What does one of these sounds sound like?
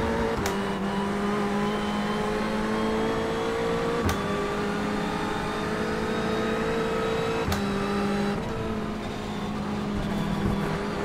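A racing car engine roars steadily, climbing in pitch and dropping with each gear change.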